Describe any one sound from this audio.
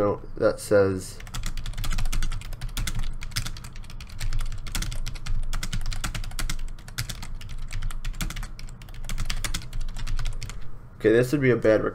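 Keys on a keyboard click rapidly in quick typing.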